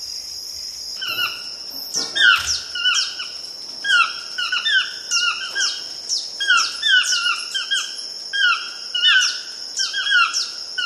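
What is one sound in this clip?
Birds call repeatedly from the treetops.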